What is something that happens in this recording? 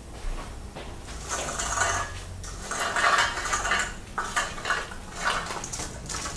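Garlic cloves tumble and clatter out of a metal colander.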